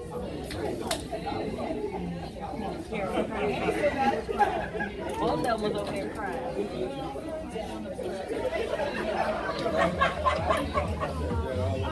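A crowd of men and women chatter at tables throughout.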